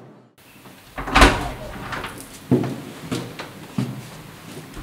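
A door handle clicks and a door swings open.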